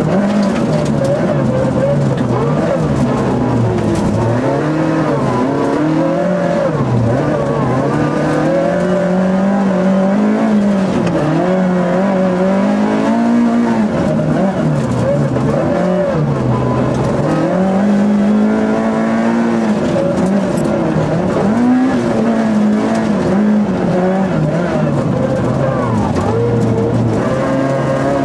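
A rally car engine revs hard, rising and falling as the gears change.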